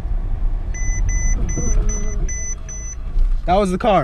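A car's collision warning beeps rapidly.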